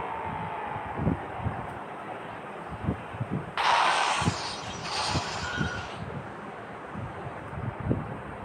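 Heavy thuds and crunches sound as a car crashes.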